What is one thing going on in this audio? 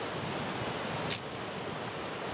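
A branch cracks and snaps.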